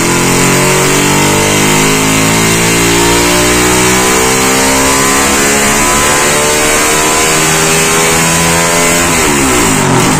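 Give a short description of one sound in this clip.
A motorcycle engine screams at high revs, its pitch climbing through the gears.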